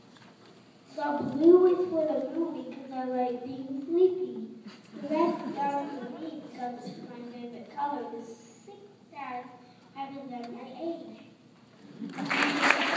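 A child speaks into a microphone, heard over loudspeakers in a large echoing hall.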